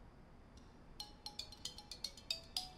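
A mobile phone rings with a bright, tinkling ringtone.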